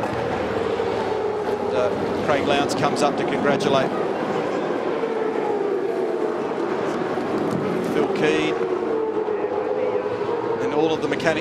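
Racing car engines roar past.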